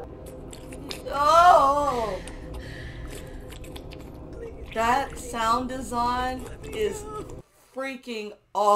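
A woman exclaims and speaks with animation close to a microphone.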